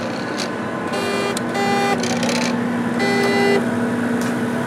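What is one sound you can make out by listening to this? A motorised arm whirs and clicks as it moves.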